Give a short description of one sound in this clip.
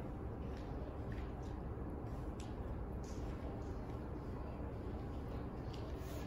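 A young woman speaks quietly, her voice muffled.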